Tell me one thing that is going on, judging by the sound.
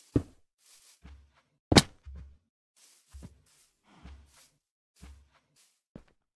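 Footsteps thud softly on grass and stone.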